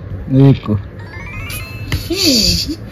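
A phone game plays short rising chimes.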